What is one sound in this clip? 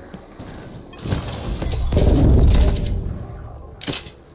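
A game's mystery box opens with a loud magical whoosh and rumble.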